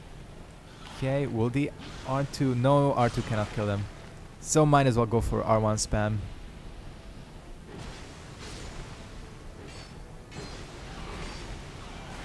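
A sword slashes through the air.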